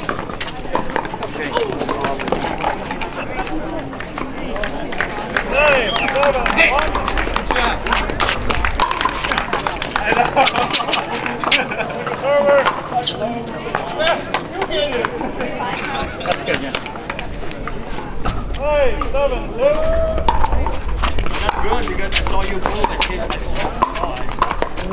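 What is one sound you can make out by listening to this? Paddles hit a plastic ball with sharp pops, back and forth.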